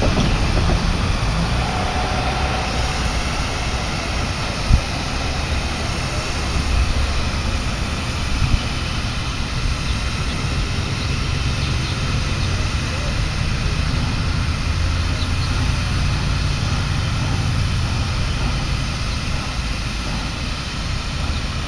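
A steam locomotive idles with a low, steady rumble in the distance.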